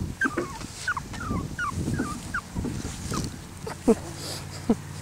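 Puppies squeak and whimper softly close by.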